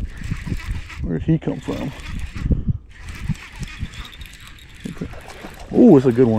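A fishing reel whirs as it is cranked.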